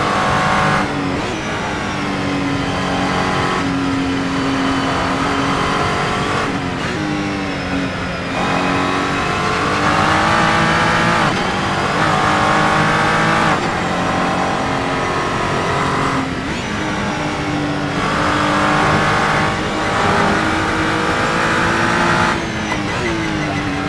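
A racing car engine roars loudly, revving up and dropping with each gear change.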